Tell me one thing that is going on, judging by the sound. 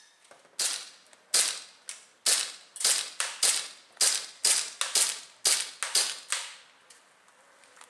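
A pistol fires rapid shots outdoors, each with a short echo.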